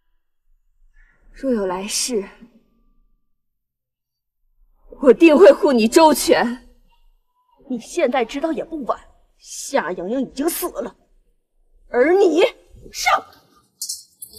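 A middle-aged woman speaks firmly, close by.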